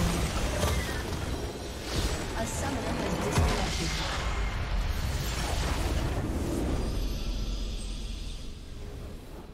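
Game spell effects crackle and blast during a fight.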